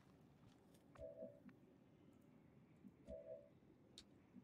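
Short electronic interface tones beep twice.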